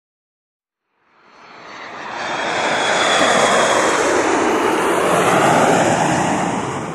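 A jet engine roars, swelling in from silence and staying loud.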